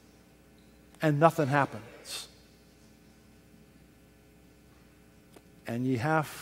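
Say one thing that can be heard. An elderly man speaks through a microphone in a large room, in short bursts with pauses.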